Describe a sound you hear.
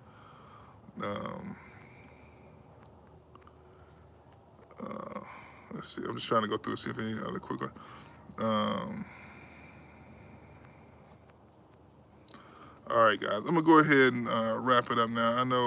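A man speaks calmly and close to the microphone, with pauses.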